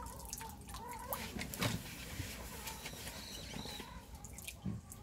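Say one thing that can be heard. Small drops of water patter lightly onto a pond's surface.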